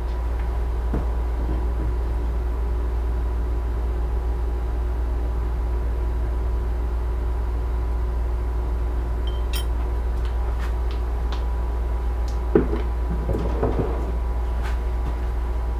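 Small wooden pieces knock and clatter as they are handled.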